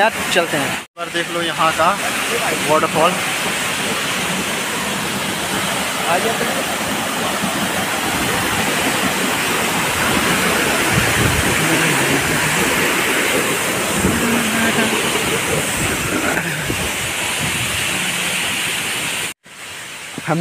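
A waterfall roars and splashes steadily nearby.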